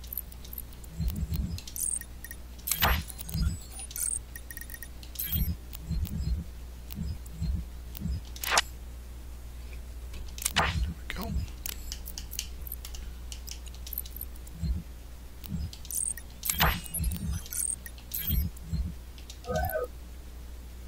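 Soft electronic clicks and blips sound as menu options are picked.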